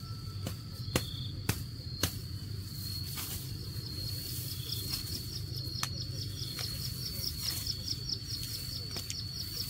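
Grass stalks rustle and snap as a woman pulls at them close by.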